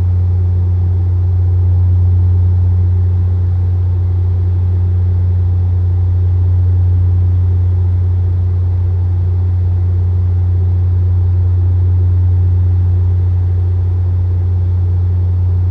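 A jet airliner's engines drone in a low, steady hum from inside the cabin.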